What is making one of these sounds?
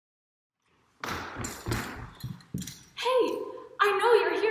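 A woman speaks cheerfully and with animation, close by.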